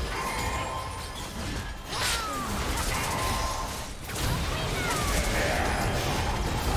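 Game spell effects whoosh and burst during a fight.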